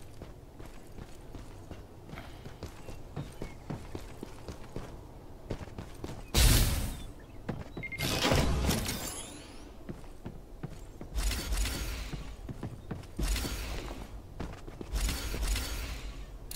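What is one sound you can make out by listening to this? Footsteps thud quickly on hard ground and wooden boards.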